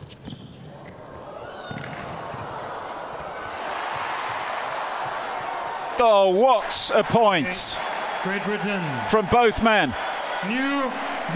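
A large crowd applauds and cheers, growing louder.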